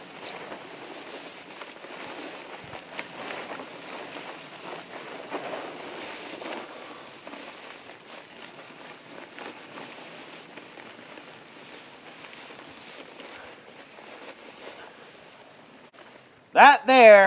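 A plastic tarp rustles and crinkles as it is wrapped around a body.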